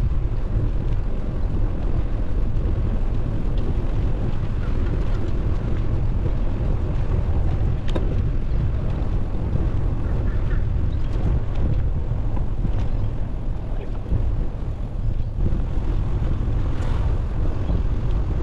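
Wind rumbles and buffets steadily outdoors.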